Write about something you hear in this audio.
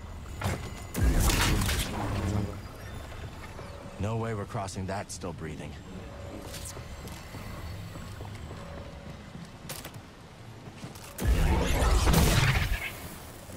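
A lightsaber ignites and hums loudly with a buzzing roar.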